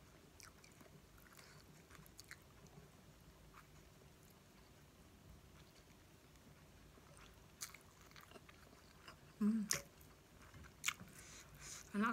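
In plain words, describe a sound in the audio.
A woman slurps noodles loudly close to a microphone.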